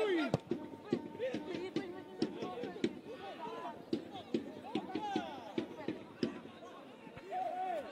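A football thuds as players kick it on grass.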